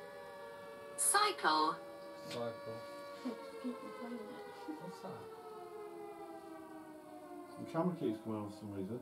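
Young men talk quietly nearby.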